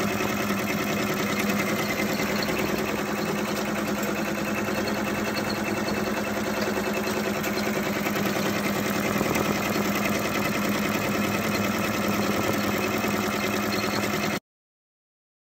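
An embroidery machine stitches with a rapid, steady whirring and clatter.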